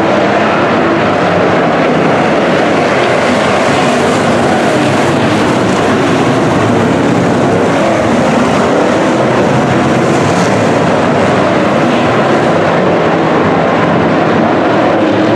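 Many race car engines roar loudly and steadily.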